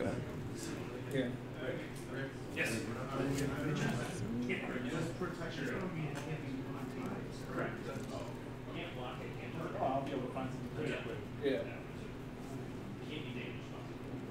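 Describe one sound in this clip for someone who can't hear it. A player shuffles a hand of cards.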